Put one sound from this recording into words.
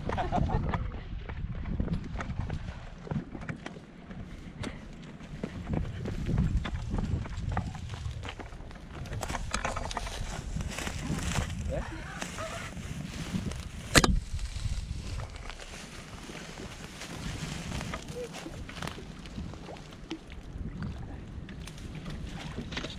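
Footsteps crunch through dry grass.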